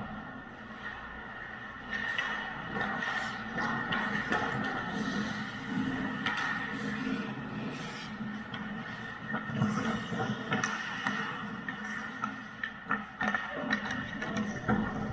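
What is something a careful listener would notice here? Ice skates scrape and carve across the ice in a large echoing rink.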